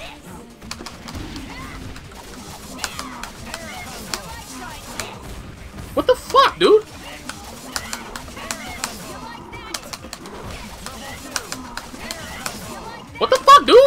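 Punches and sword slashes land in quick bursts of sharp hits.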